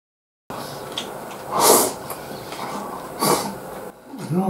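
A man slurps food noisily.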